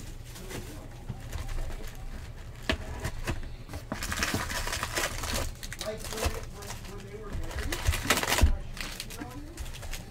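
Cardboard boxes knock and scrape against each other.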